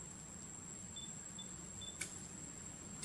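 A baby monkey gives short, high squeaks.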